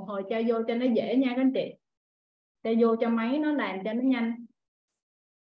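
A young woman talks cheerfully over an online call.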